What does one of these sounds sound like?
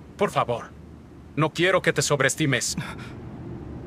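A young man speaks tensely, close up.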